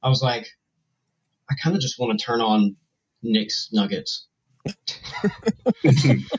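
A man speaks with animation into a close microphone over an online call.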